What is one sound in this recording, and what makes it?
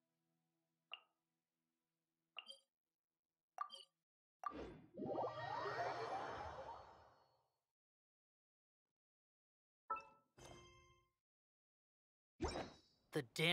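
Short game menu chimes ring out several times.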